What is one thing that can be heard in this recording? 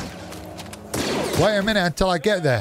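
A laser blast fires.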